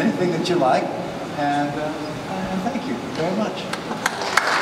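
An older man speaks calmly through a microphone in a large hall.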